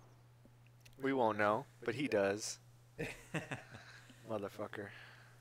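Young men talk and laugh with animation over microphones.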